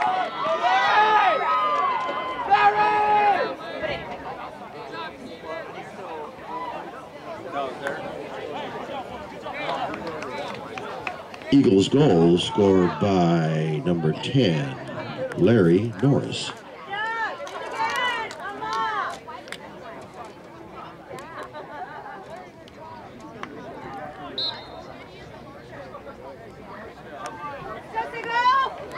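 Young male players shout to each other across an open field.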